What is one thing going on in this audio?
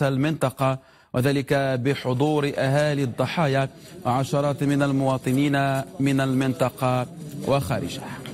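A man speaks calmly and steadily into a microphone.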